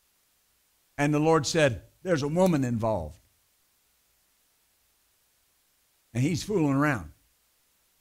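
A middle-aged man speaks calmly and clearly through a microphone, with long pauses.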